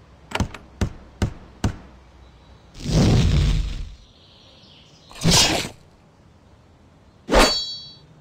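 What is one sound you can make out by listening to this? Weapons strike in a fight, in short sharp blows.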